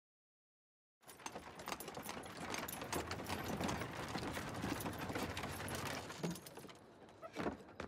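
Horse hooves clatter on cobblestones.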